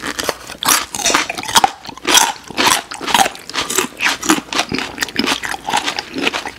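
A man chews crunchy fried food close to a microphone.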